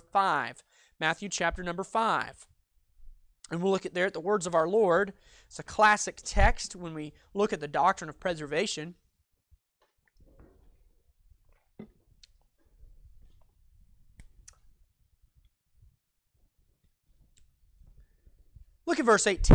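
A young man speaks calmly and clearly from close by, lecturing with pauses.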